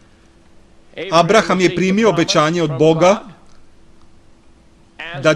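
An elderly man speaks slowly and earnestly into a microphone.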